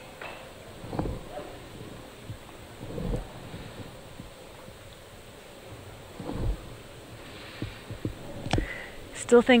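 Game tiles click softly against a rack.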